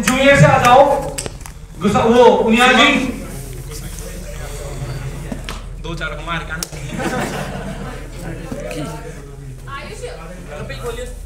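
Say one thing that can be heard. A young man speaks loudly through a microphone and loudspeakers in an echoing hall.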